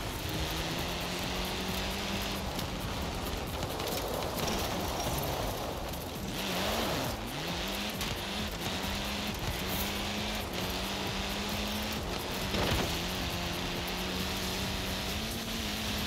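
Tyres crunch and hiss over loose gravel.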